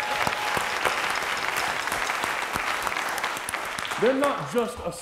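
An audience claps and cheers in a large room.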